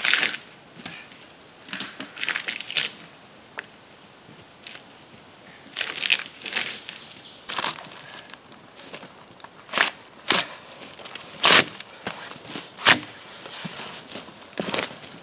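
Bark is scraped and torn off a log in short, rasping strokes.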